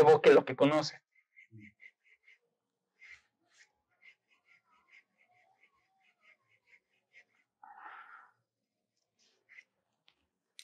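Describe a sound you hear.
A pencil scratches softly across paper in short strokes.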